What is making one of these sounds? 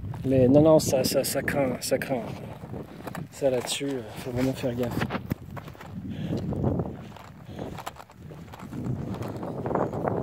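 Footsteps crunch on a dirt and gravel track.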